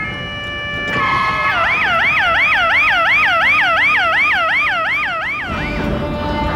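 An ambulance siren warbles rapidly up and down.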